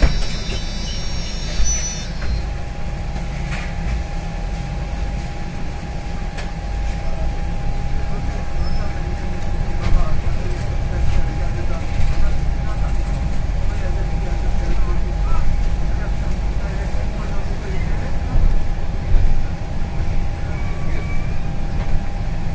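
A bus engine rumbles low and steady as the bus pulls away and drives along.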